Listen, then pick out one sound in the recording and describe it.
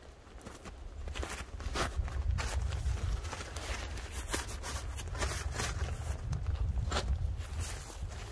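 Nylon fabric rustles and crinkles as it is handled close by.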